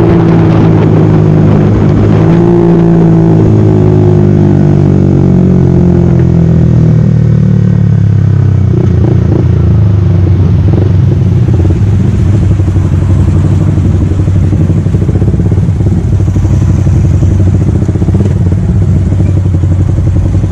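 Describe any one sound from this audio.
A motorcycle engine hums loudly up close, its pitch falling as it slows.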